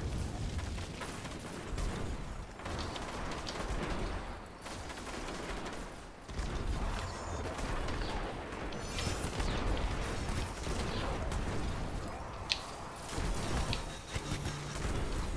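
Gunfire and energy blasts crackle in a video game.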